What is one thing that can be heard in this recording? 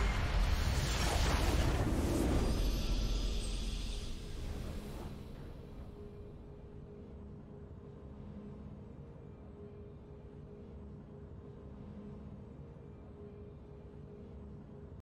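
A triumphant game fanfare swells and fades.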